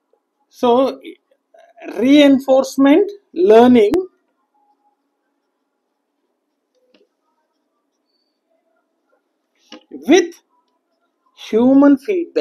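A man speaks calmly and clearly, close by, in short phrases with pauses.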